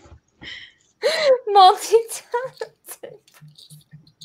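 A young woman laughs with animation over an online call.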